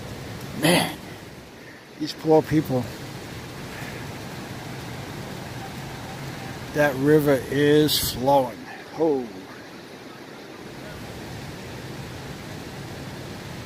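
Floodwater rushes and gurgles steadily.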